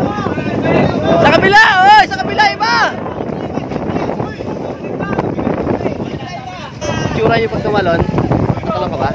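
Young men shout and cheer with excitement outdoors.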